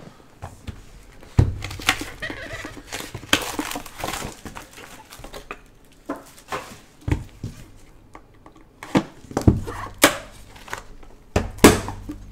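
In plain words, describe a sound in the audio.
Cardboard boxes knock and scrape as gloved hands handle them.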